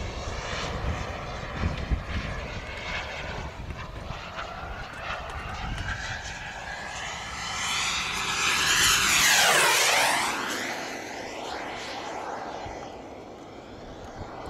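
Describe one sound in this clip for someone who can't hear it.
A jet engine roars overhead, swelling loudly as the aircraft flies past and then fading away.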